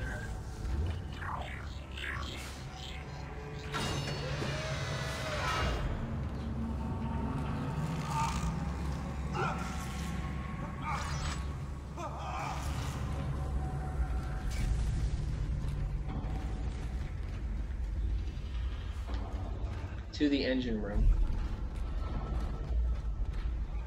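Heavy boots clank on a metal floor.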